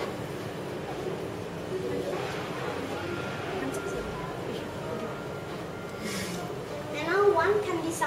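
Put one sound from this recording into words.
A young woman speaks cheerfully nearby.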